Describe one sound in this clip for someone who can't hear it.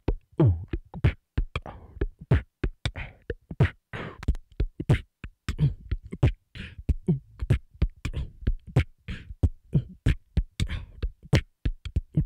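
A young man beatboxes rapidly into a microphone, with punchy kicks, clicks and hissing snares.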